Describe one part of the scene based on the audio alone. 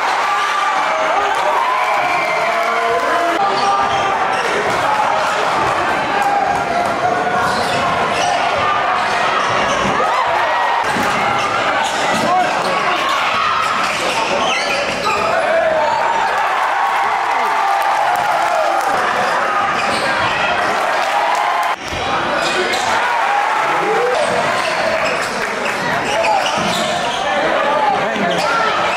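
A large crowd cheers and shouts in an echoing gym.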